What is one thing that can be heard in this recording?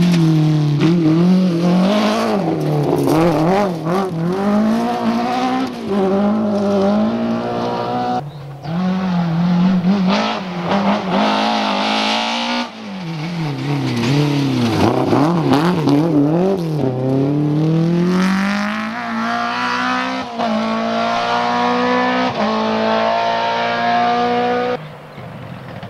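A rally car engine roars and revs hard as the car races past.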